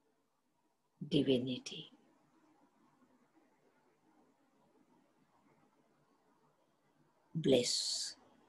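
An elderly woman speaks calmly over an online call.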